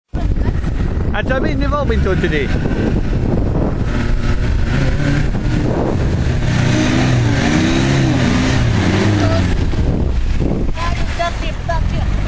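An engine revs hard and strains under load.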